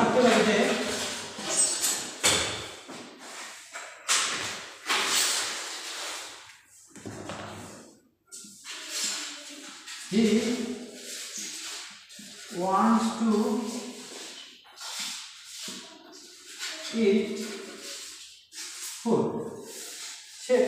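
A marker squeaks and scratches on a whiteboard.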